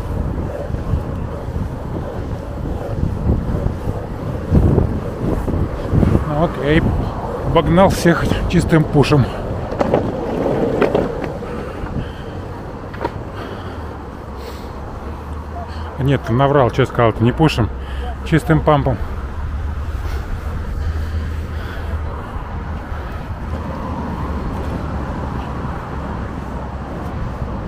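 Skateboard wheels rumble steadily on pavement.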